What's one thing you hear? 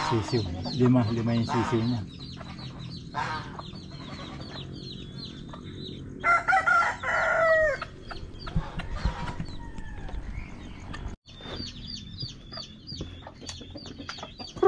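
Chicks peep with high, repeated chirps.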